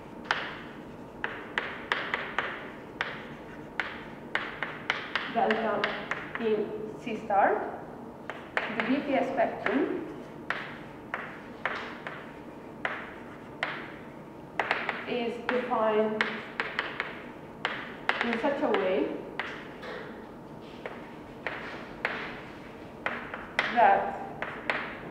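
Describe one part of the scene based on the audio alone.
Chalk taps and scrapes on a blackboard in quick, uneven strokes.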